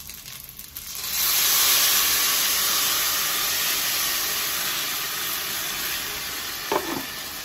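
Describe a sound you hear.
Blended tomato liquid pours and splashes into a pot.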